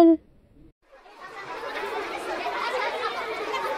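Young children shout and squeal playfully close by.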